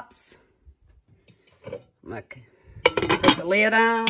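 A glass lid clinks onto a ceramic pot.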